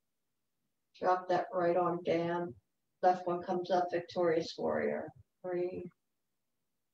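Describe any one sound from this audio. An elderly woman speaks calmly, heard through an online call.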